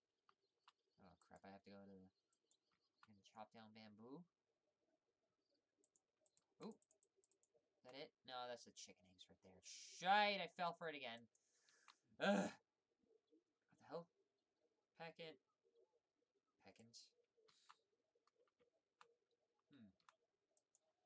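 A young woman talks calmly and casually into a nearby microphone.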